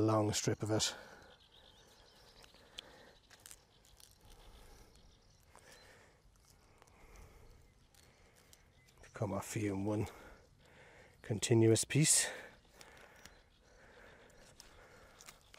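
Dry reeds rustle as a man handles them.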